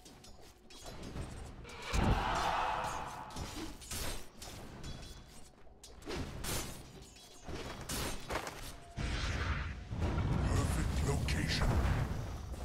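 Game combat effects crackle and boom in a fight.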